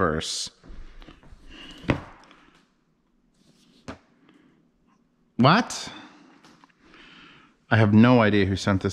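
Cardboard boxes tap and rustle in hands.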